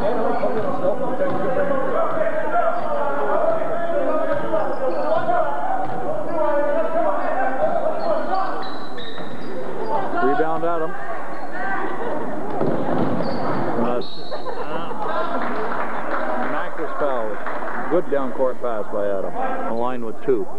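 A crowd of spectators chatters and cheers in a large echoing gym.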